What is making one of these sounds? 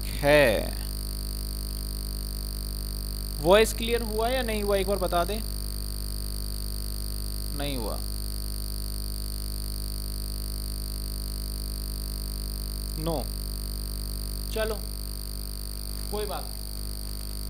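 A man speaks calmly in short phrases, close to a microphone.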